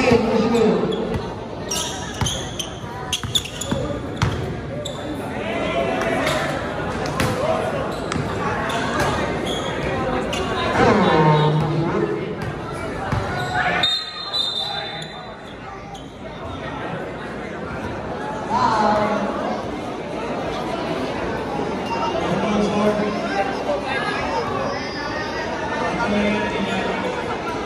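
A large crowd cheers and shouts in an echoing gym.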